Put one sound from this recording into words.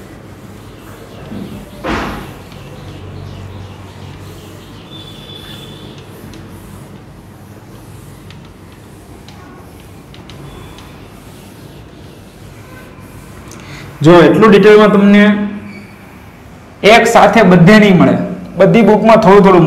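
A cloth rubs against a whiteboard.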